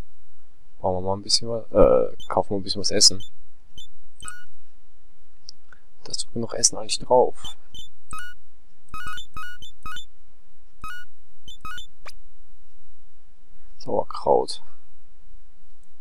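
Short electronic beeps sound as game menu items are clicked.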